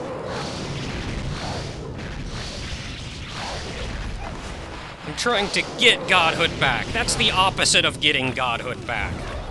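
Sword slashes and magical impacts ring out in a video game battle.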